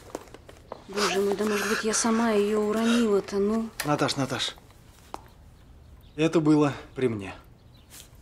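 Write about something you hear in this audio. A middle-aged man speaks firmly.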